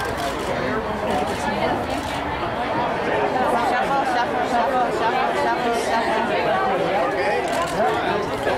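A crowd of men and women chatters and calls out nearby.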